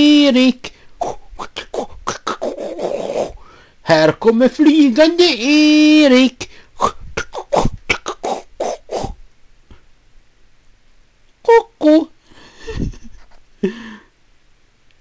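A young woman talks and laughs close to the microphone.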